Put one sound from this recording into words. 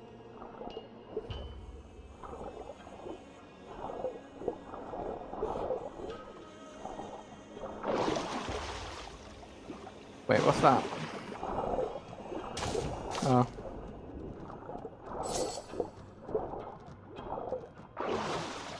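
Bubbles rush and gurgle underwater as a swimmer moves.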